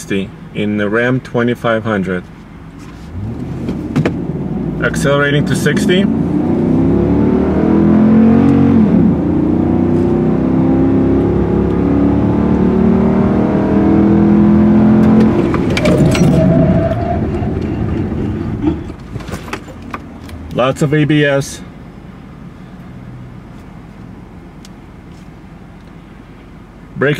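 Tyres and wind rush steadily against the moving truck.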